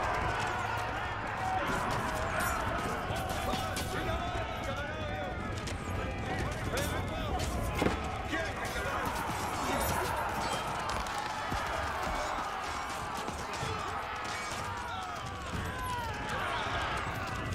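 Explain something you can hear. Swords clash and soldiers clatter in a battle.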